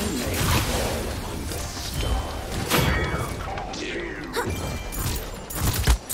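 Weapons fire in quick, sharp blasts.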